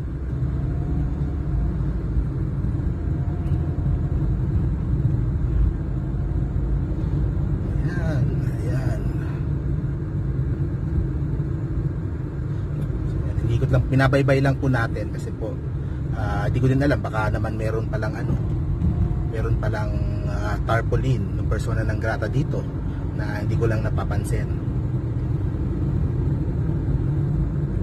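Tyres rumble on the road beneath a moving car.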